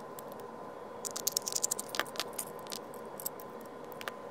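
A screwdriver scrapes and clicks against a metal screw.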